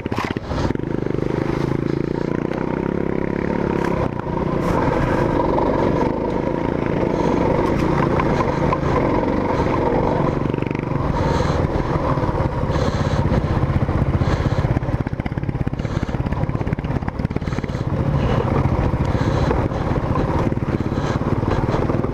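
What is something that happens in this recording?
Tyres crunch and rattle over loose rocks and dirt.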